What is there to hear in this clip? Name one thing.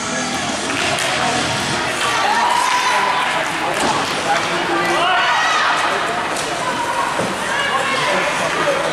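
Skates scrape and swish across the ice.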